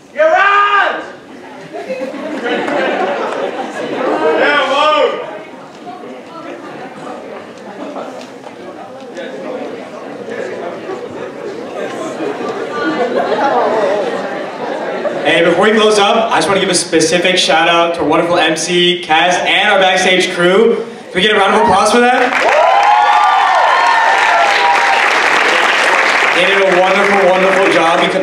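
An audience cheers and whoops loudly in a large hall.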